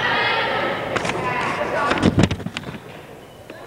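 A volleyball is smacked by hands.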